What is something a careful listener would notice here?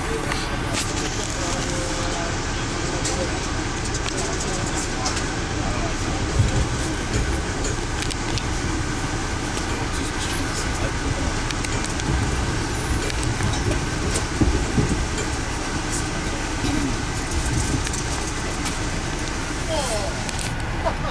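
Train wheels click and clatter over rail joints.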